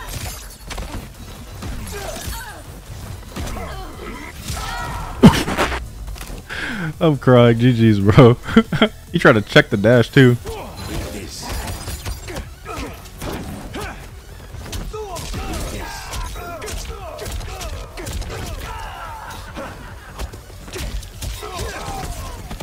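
Punches and kicks thud and smack in a video game fight.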